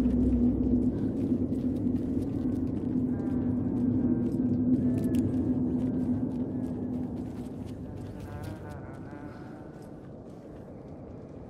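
Footsteps splash and crunch on wet, littered ground.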